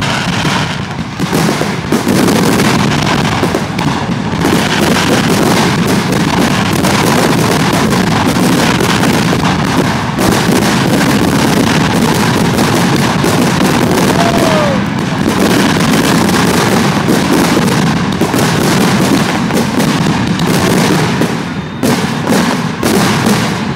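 Fireworks fizz and crackle as sparks scatter.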